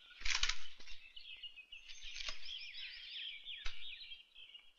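Leaves rustle and twigs snap as a man pushes through dense bushes.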